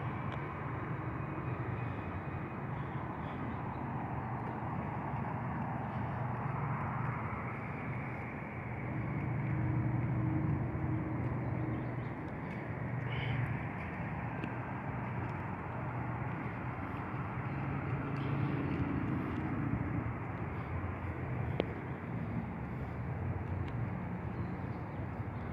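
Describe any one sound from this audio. Footsteps tap slowly on paving stones.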